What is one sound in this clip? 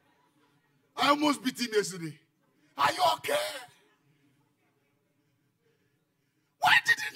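A man speaks loudly with animation into a microphone, heard through loudspeakers.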